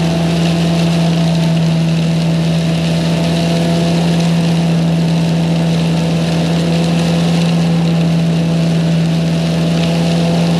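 A leaf blower's engine drones loudly and steadily close by.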